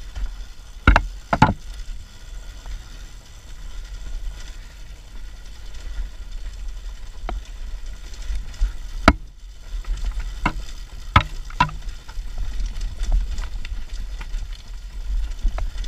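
Knobby tyres crunch and bump over loose rocks.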